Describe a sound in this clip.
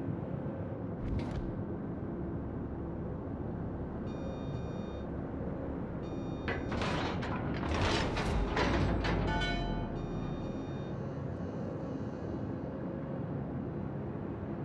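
A ship's hull rushes through choppy water with a steady low roar.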